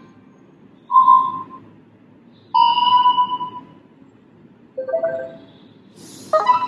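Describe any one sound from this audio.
A phone plays short notification chimes one after another through its small speaker.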